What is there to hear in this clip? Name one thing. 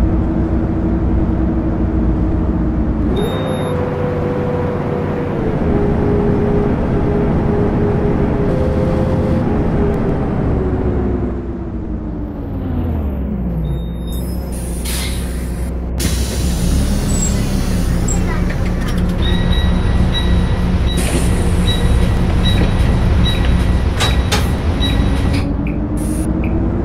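A bus engine hums steadily and its pitch rises and falls as the bus drives.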